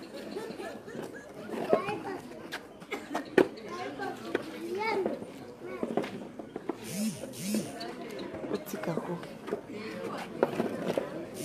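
A large crowd of children chatters and calls out outdoors.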